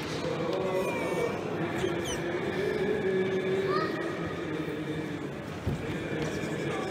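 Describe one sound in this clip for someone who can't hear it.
A crowd of men and women murmurs and talks quietly nearby, echoing in a large stone hall.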